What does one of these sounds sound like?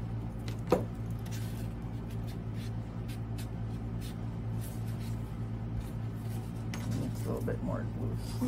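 Fabric petals rustle softly as hands handle them.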